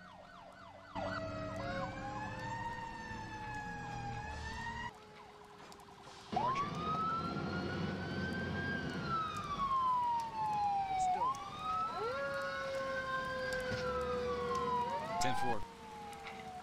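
Fire engine sirens wail, rising and falling.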